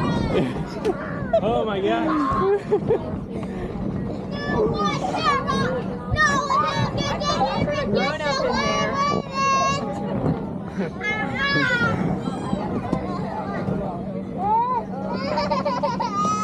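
Young children chatter and shout outdoors.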